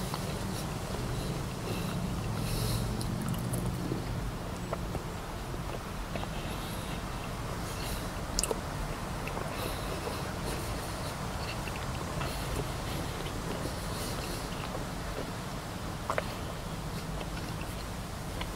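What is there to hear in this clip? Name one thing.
An elderly man chews food with his mouth closed, close to a microphone.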